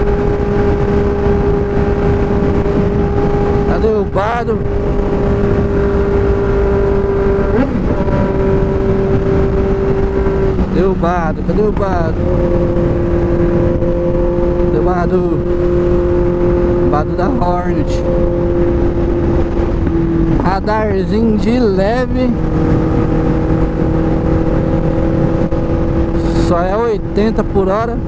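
A motorcycle engine hums steadily up close, its pitch shifting as the gears change.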